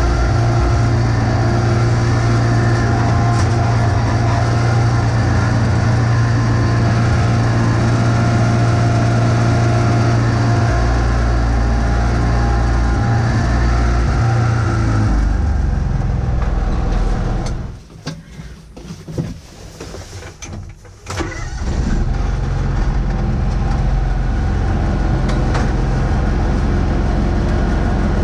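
A small tractor engine rumbles loudly close by, briefly dropping low before roaring back.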